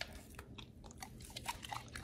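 A dog sniffs eagerly up close.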